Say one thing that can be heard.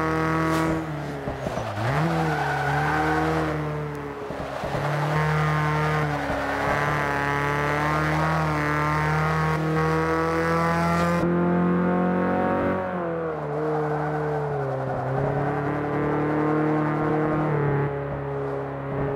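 A car engine revs loudly, its pitch rising and dropping as gears shift.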